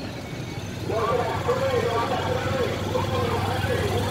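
A motorbike idles and rumbles nearby.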